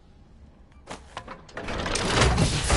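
A lever clunks as it is pulled.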